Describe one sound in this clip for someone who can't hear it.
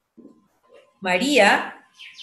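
A child speaks loudly and expressively over an online call.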